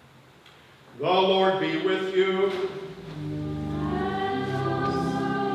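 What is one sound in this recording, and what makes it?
An elderly man chants loudly in a large echoing hall.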